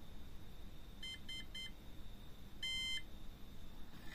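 An electronic speed controller beeps.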